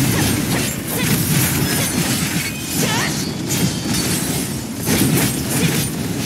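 Electric zaps crackle sharply.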